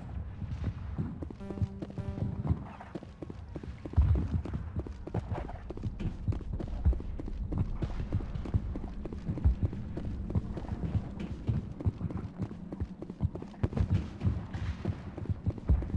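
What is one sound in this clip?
Heavy armoured footsteps clank steadily on a metal floor.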